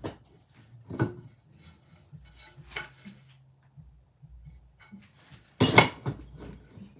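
A wooden board knocks and scrapes against a workbench.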